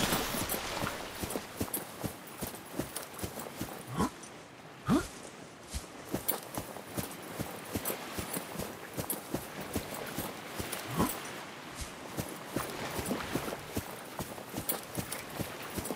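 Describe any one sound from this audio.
Footsteps crunch on soft sand.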